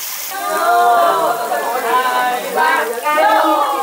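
Meat sizzles on a hot grill.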